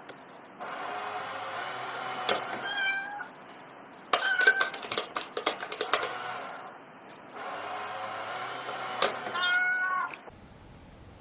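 A toy coin bank plays a short, tinny electronic tune.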